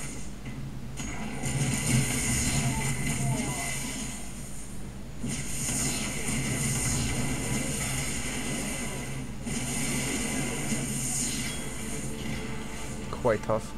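Gunfire and blasts crackle in a close-range fight.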